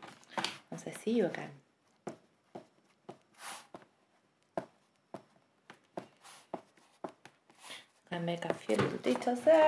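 A pastel crayon scratches and rubs softly on paper.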